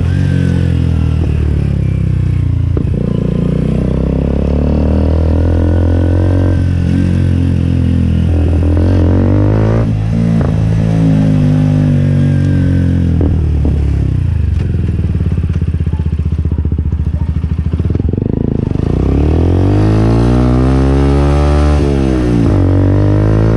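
A motorcycle engine rumbles close by, revving up and down again and again.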